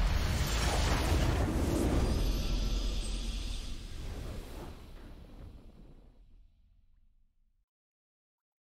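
A triumphant game victory fanfare booms and slowly fades out.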